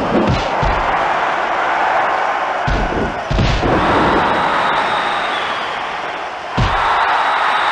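Heavy thuds of bodies hitting the mat land now and then.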